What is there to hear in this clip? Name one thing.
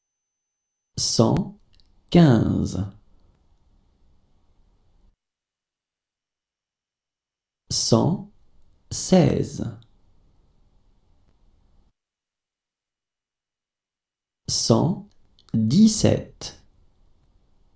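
A woman reads out words slowly and clearly, with long pauses between them.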